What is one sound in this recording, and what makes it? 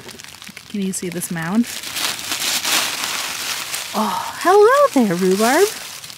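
Dry leaves rustle as a small hand pushes through them.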